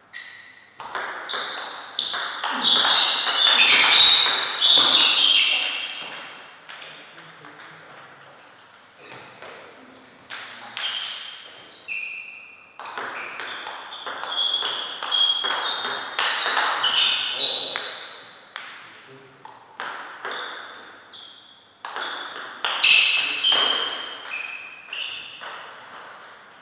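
A table tennis ball clicks as it bounces on the table.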